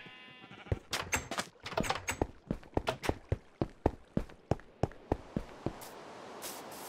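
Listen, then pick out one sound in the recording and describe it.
Footsteps tap quickly on hard stone.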